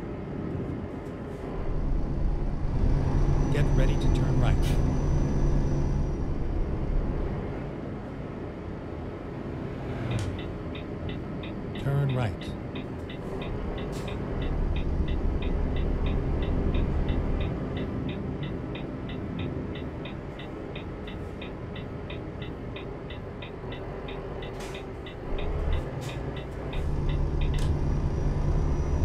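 A diesel truck engine hums while cruising, heard from inside the cab.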